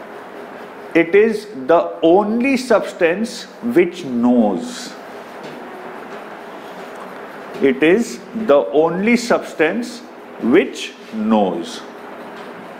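A man speaks calmly through a clip-on microphone in a slightly echoing room.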